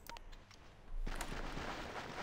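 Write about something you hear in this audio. Wind rushes steadily outdoors.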